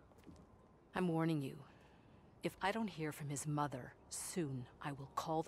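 A woman speaks firmly at close range.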